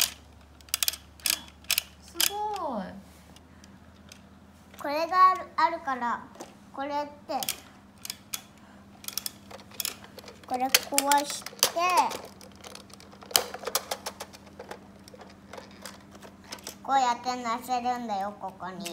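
Plastic toys clack and knock together as they are handled.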